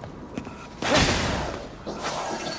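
Glassy fragments shatter in a sudden loud burst.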